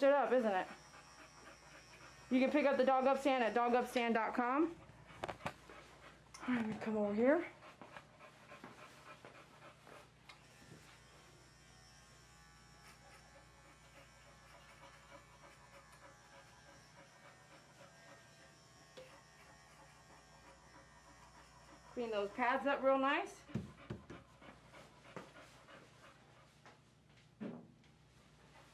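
A woman talks to a dog in a high, cheerful voice nearby.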